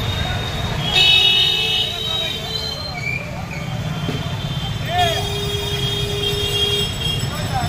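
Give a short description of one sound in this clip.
Vehicle horns honk in bursts.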